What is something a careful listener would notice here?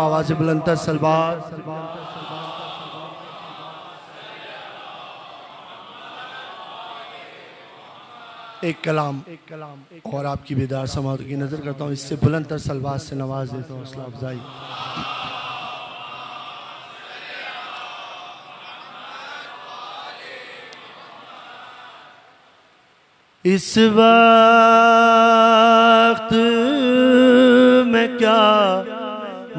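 A man speaks and chants with feeling into a microphone, heard through loudspeakers.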